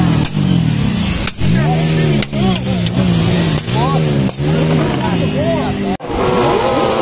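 A motorcycle engine revs loudly again and again, close by.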